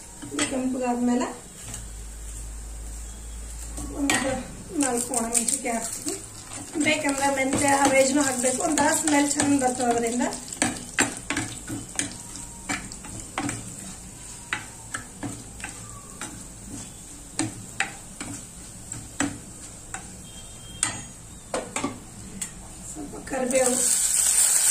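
A metal ladle scrapes and knocks against a stone pot.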